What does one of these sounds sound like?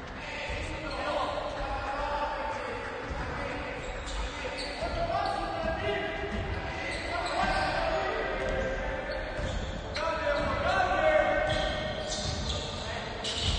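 Young men call out to each other in a large echoing gym.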